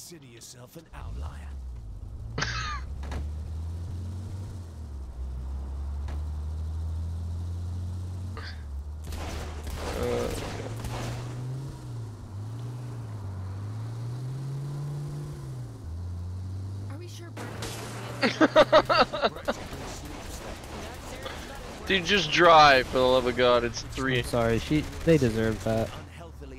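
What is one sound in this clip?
An SUV engine hums as the SUV pulls away and drives.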